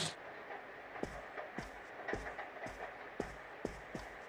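Footsteps patter softly across a floor.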